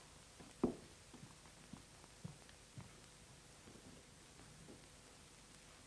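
High-heeled footsteps tap along a hard floor and fade away.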